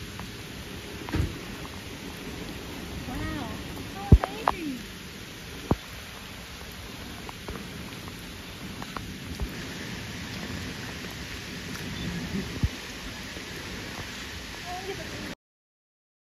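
Rain patters steadily on shallow water outdoors.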